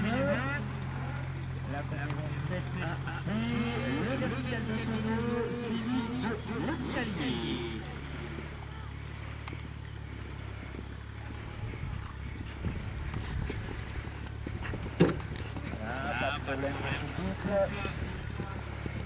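A horse gallops, its hooves thudding on grass.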